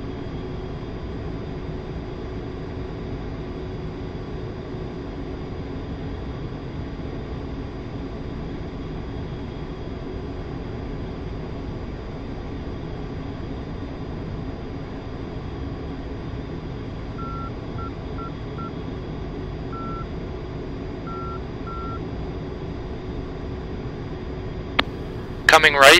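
A jet engine roars steadily from inside a cockpit.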